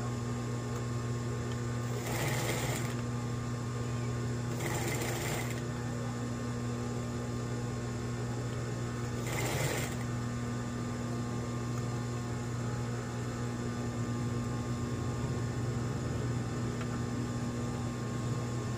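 A sewing machine whirs as it stitches fabric.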